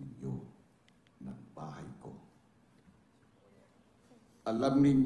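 A young man speaks calmly nearby.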